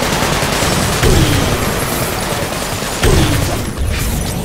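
Explosions boom loudly, one after another.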